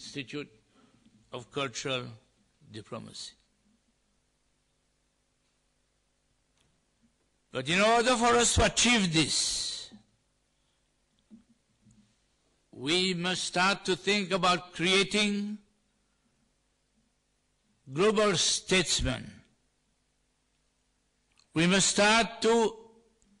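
A middle-aged man speaks slowly and deliberately through a microphone, with long pauses.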